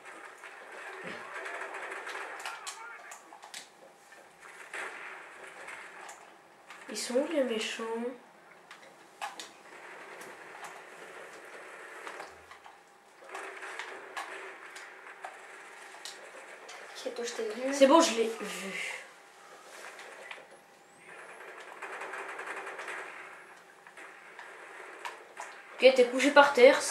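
Gunfire from a video game crackles in short bursts.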